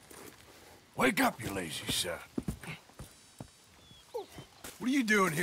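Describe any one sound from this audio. A second man calls out loudly to wake someone.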